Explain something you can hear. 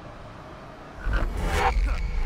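A magic blast bursts loudly.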